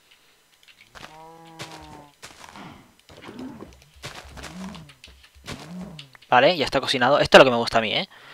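A cow moos repeatedly.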